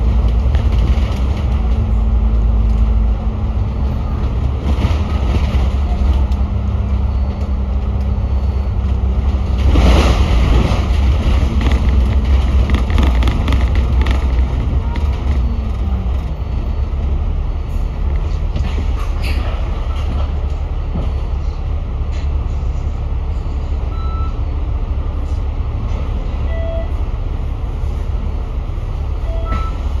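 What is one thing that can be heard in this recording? Wind buffets against the microphone outdoors.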